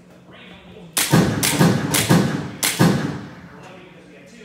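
A pistol fires several loud shots in quick succession, ringing out in a large room.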